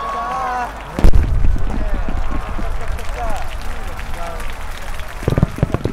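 A firework bursts with a deep, rolling boom.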